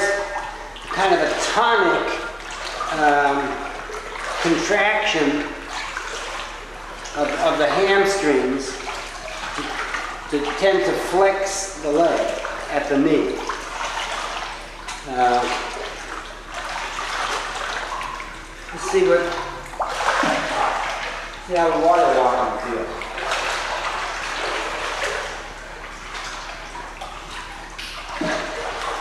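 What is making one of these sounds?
A child splashes while kicking through water.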